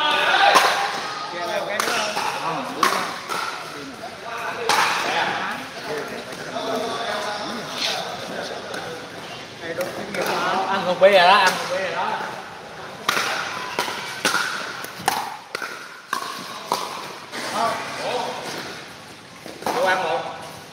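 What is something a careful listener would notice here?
Men talk and call out across the court, echoing in a large hall.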